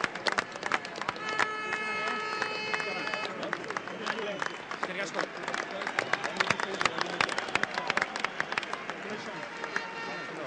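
A group of men claps hands up close.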